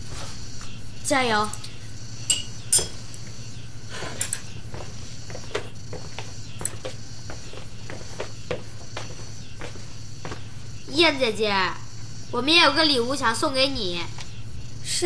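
A boy speaks with excitement, close by.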